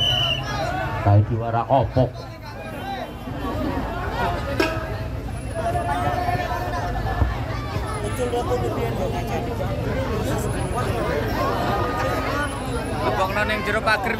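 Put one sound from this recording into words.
A large outdoor crowd of young men chatters and shouts loudly nearby.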